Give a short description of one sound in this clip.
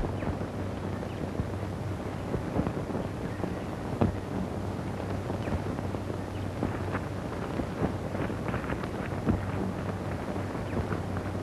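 Branches rustle and snap as men push through thick brush.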